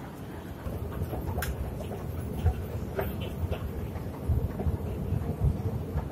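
Shoes scuff as a person steps onto a moving escalator.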